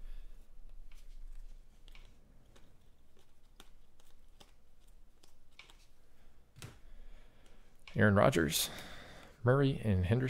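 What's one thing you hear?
Trading cards flick and rustle as they are shuffled by hand.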